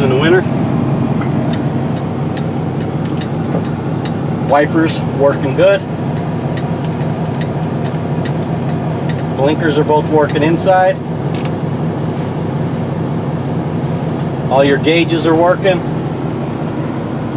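A diesel semi-truck engine idles, heard from inside the cab.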